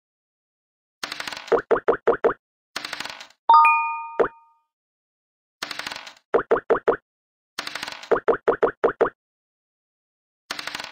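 Dice rattle as they roll.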